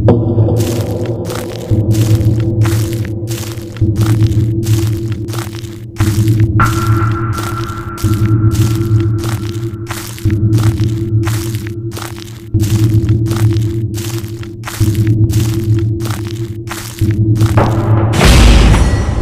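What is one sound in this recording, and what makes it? Footsteps tap steadily on hard paving.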